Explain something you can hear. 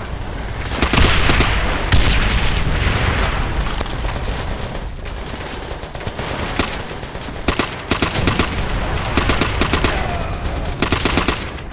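Rapid gunfire bursts out in short volleys close by.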